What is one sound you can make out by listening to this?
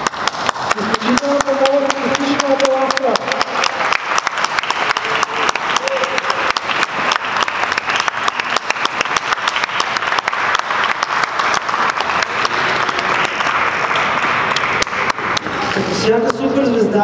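Hands clap in lively applause.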